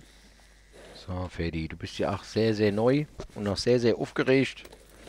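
A man speaks calmly and softly, close by.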